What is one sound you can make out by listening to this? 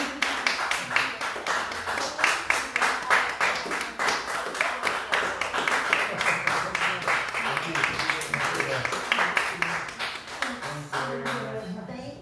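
People clap their hands in a quick, steady rhythm.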